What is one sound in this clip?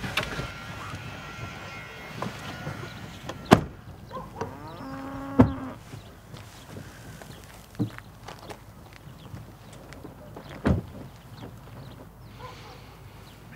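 A car door slams shut nearby.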